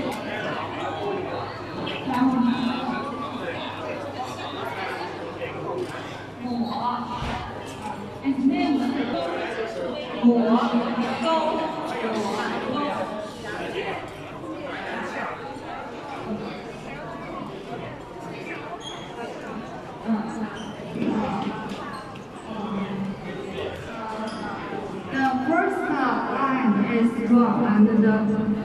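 Several people talk nearby in a busy, echoing room.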